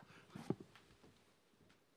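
A plastic bottle knocks against a table.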